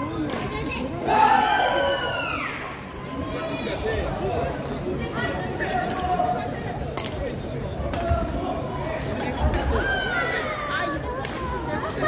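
Women call out during a badminton rally.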